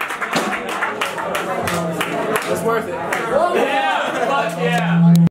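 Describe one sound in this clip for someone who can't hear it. Drums are hit hard with cymbal crashes.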